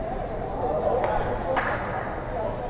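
A hockey stick clacks sharply against a puck.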